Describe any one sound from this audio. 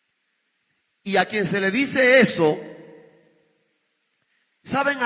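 A man preaches with passion into a microphone, his voice echoing in a large hall.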